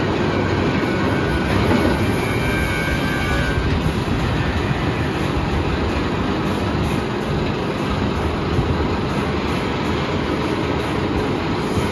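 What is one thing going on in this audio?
A roller coaster chain lift clanks steadily as a train climbs.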